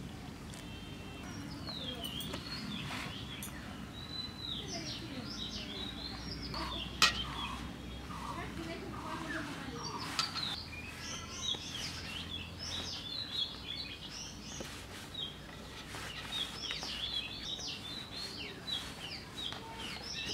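Hands rub and squish soft dough.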